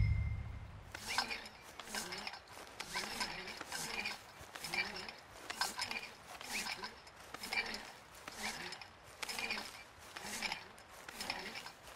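Footsteps crunch through snowy grass at a steady walking pace.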